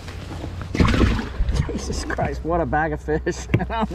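A livewell hatch lid thumps shut on a boat deck.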